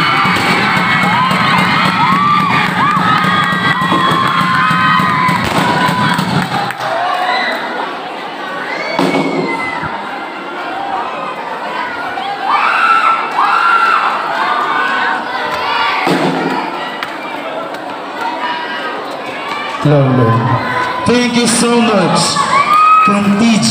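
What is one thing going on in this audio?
A crowd cheers and shouts excitedly nearby.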